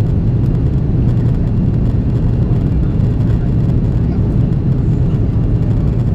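Jet engines roar steadily in a low, constant rumble inside an airliner cabin.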